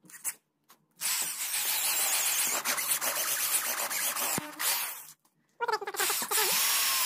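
A power drill whirs loudly, boring through plastic.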